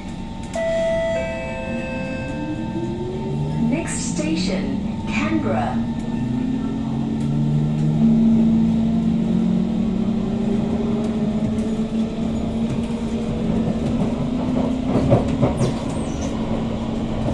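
A train hums and whines steadily as it rolls along the track, its motor pitch rising and falling.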